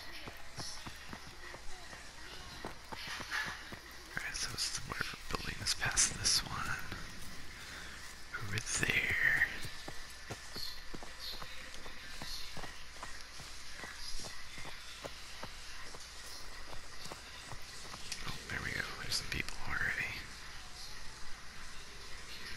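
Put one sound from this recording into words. Footsteps crunch steadily over ground and through grass.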